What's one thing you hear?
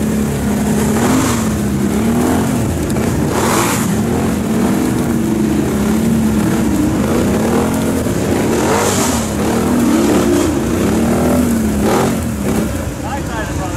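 A V-twin ATV engine revs hard while stuck in thick mud.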